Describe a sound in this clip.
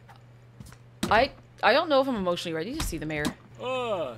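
A young woman speaks close into a microphone with animation.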